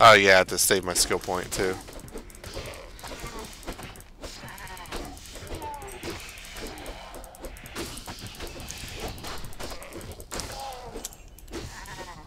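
Spells crackle and clash in a fight.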